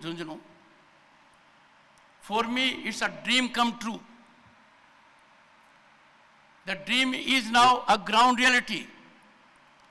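An elderly man speaks slowly and deliberately into a microphone, with pauses between phrases.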